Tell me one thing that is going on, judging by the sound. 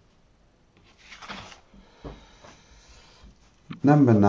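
Stiff paper rustles as it is handled.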